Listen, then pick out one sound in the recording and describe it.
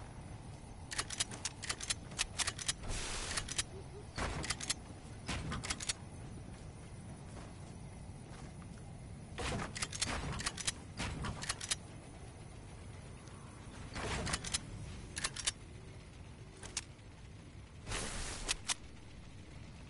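Wooden building pieces clack into place in quick bursts.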